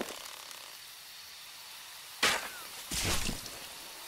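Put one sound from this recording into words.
An arrow whooshes away.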